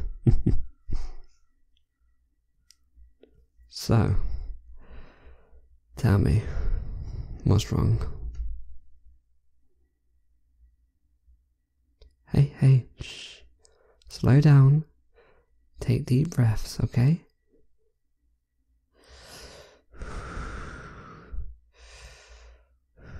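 A young man speaks softly and intimately, close to a microphone, with pauses between phrases.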